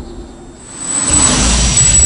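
A car engine hums as the car drives along a road.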